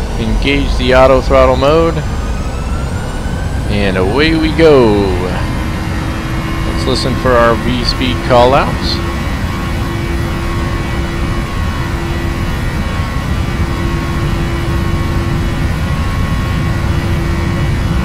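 Jet engines roar steadily as an airliner rolls down a runway.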